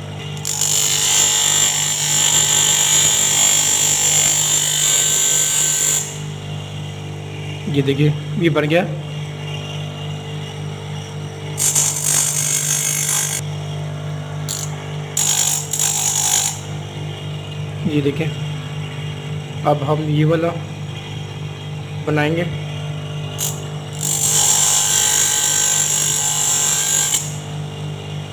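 A motor hums steadily.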